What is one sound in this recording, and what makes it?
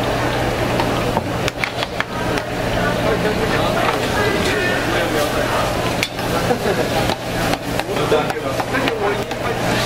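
Metal tongs clink against a metal pan.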